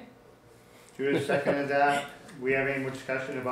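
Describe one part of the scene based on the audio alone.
A man speaks calmly, heard through a microphone.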